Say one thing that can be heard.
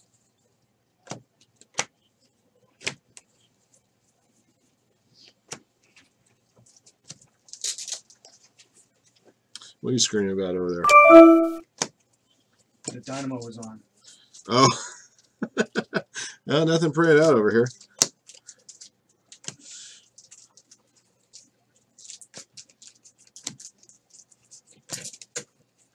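Trading cards flick and slap as they are shuffled through by hand.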